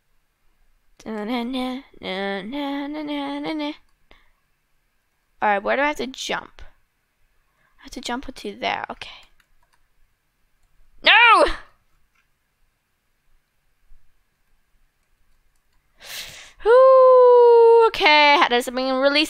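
A young girl talks animatedly into a headset microphone, close up, in short bursts.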